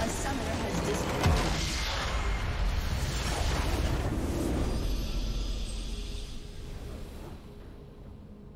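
A loud rumbling explosion booms and slowly fades.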